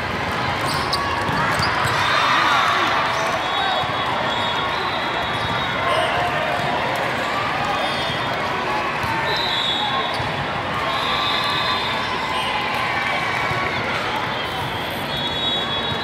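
A crowd chatters and calls out steadily in a large echoing hall.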